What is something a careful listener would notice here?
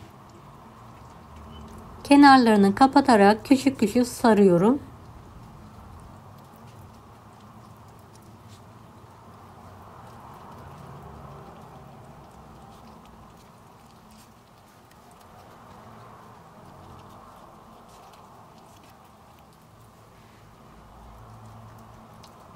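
Soft leaves rustle and crinkle as hands fold and roll them.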